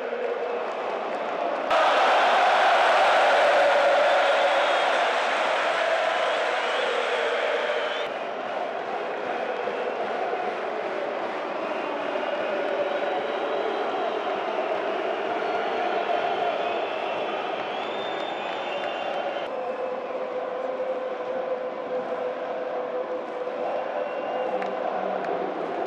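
A large crowd cheers and chants in a stadium.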